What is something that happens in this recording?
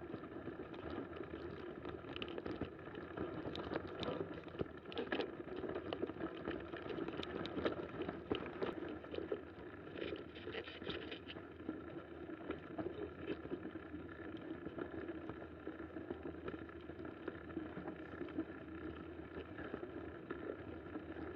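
Bicycle tyres crunch over snow.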